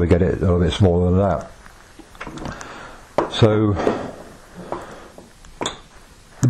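A metal tripod clicks and knocks as it is handled on a table.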